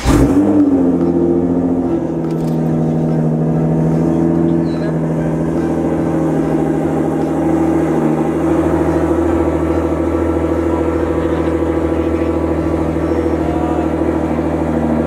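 A car engine idles with a deep, steady rumble close by.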